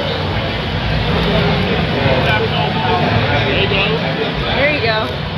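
A crowd of people chatters loudly all around in a large, busy hall.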